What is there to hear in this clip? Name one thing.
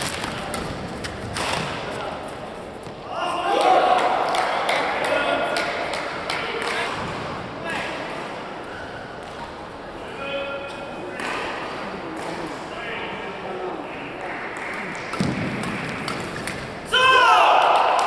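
Shuttlecocks are struck with sharp pops of rackets in a large echoing hall.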